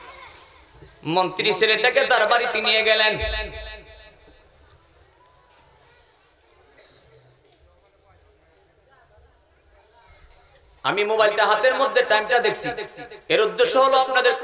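A man preaches loudly and with fervour into a microphone, heard through loudspeakers, in bursts with pauses.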